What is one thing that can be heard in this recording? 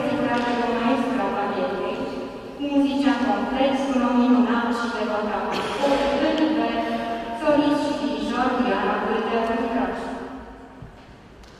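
A choir sings in harmony in a large echoing hall.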